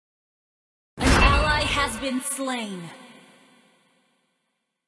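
A game sound effect rings out announcing a kill.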